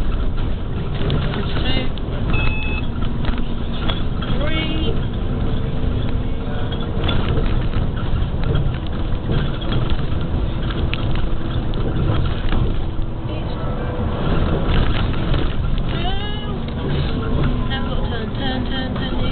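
A vehicle rumbles steadily as it drives along a road.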